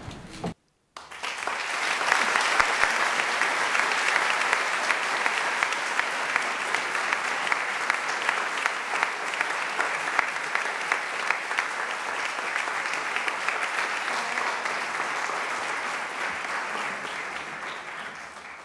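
A crowd applauds steadily in a large echoing hall.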